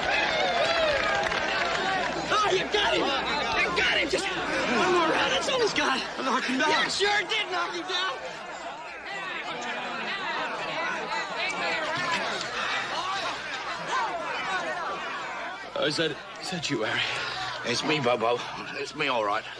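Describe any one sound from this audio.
A crowd of men and women cheers and shouts outdoors.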